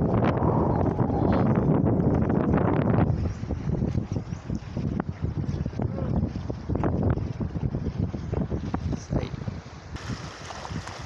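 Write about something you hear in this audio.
Wind blows hard across open water.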